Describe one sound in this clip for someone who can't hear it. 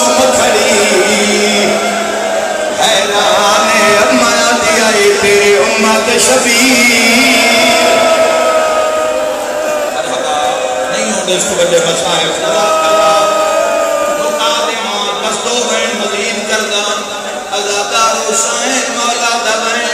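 A man chants loudly through a microphone and loudspeakers.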